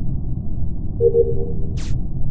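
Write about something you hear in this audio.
A short game chime rings as a task completes.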